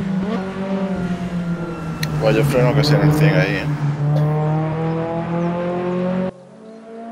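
Racing car engines roar at high revs.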